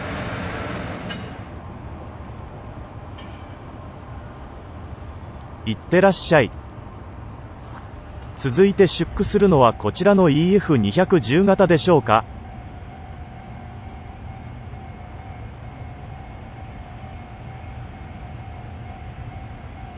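An electric locomotive rolls along the tracks.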